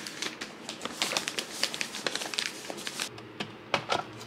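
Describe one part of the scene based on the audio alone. Paper wrapping crinkles and rustles as it is folded.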